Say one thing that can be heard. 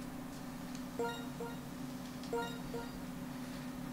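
A video game menu chimes with short electronic tones.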